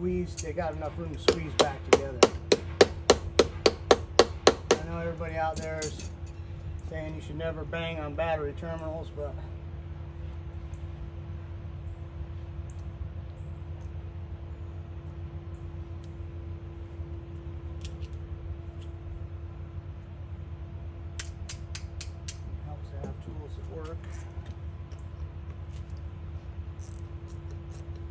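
A metal tool clicks and taps sharply against a battery terminal.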